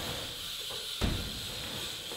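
A bike lands with a hard thud on concrete.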